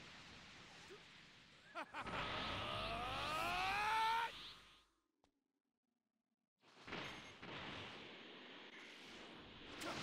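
Energy blasts whoosh and roar in a fight.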